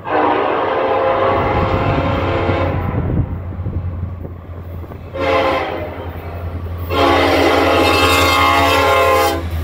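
A train horn blows loud, long blasts.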